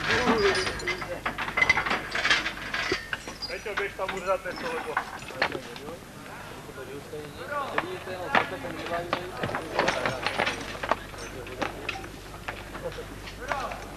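Several men talk and call out to each other outdoors.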